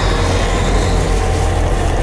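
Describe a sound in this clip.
A fireball crackles and roars.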